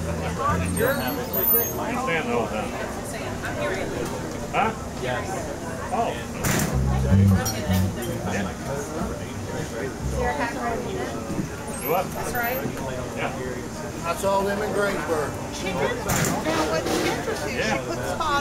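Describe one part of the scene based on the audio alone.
A saxophone plays a melody.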